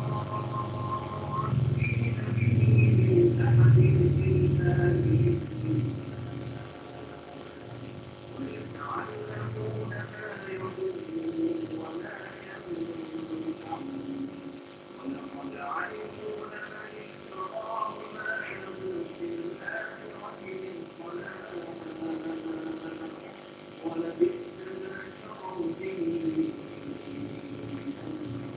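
A man speaks calmly through an online call.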